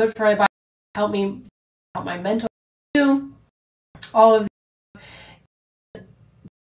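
A young woman speaks close to the microphone in short bursts with pauses.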